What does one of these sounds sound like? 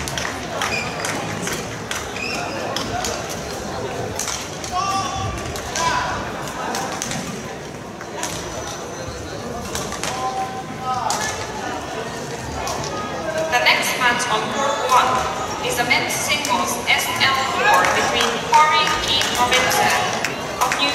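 Several people call out and chatter in a large echoing hall.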